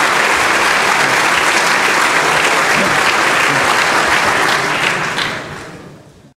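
A large audience applauds in an echoing hall, then the applause fades away.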